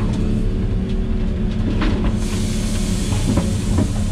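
Soil pours from an excavator bucket into a truck bed with a rushing sound.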